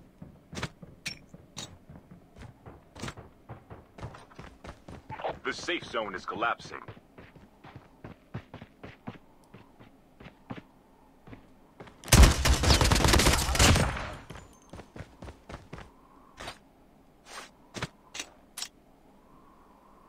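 Footsteps tap quickly on a hard floor in a video game.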